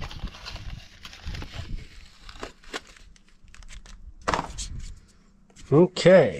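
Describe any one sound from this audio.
Cardboard rustles and scrapes in a man's hands.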